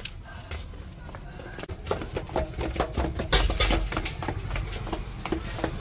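A metal chair frame knocks and rattles while being carried.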